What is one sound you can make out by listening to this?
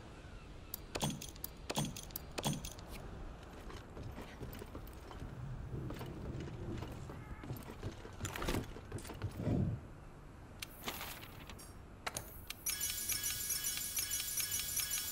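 Game menu sounds click and chime.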